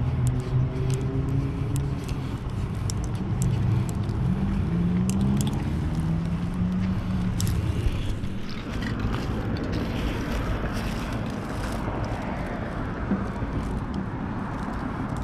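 A felt marker squeaks and scratches across a smooth surface.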